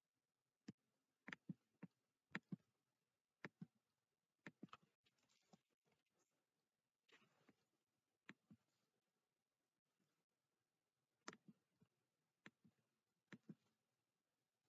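A young man speaks quietly and haltingly, close to the microphone.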